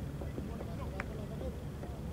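A cricket bat knocks a ball with a sharp crack.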